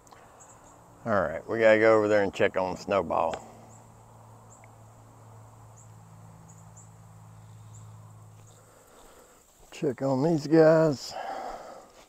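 A man speaks calmly, close by, in two short bursts.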